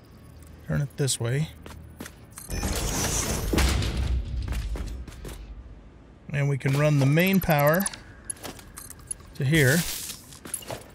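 An older man talks with animation, close to a microphone.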